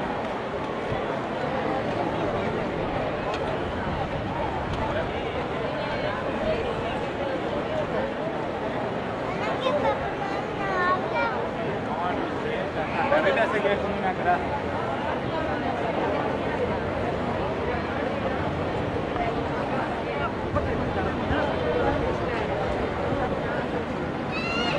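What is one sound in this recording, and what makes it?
A large crowd chants and shouts outdoors.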